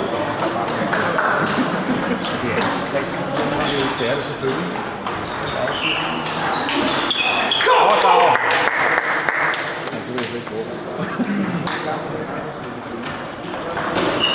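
A busy hall echoes with many distant voices chattering.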